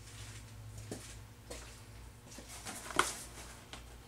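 A cardboard box rustles and thumps as it is handled.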